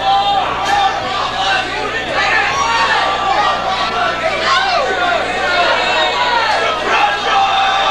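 A drummer beats drums and crashes cymbals.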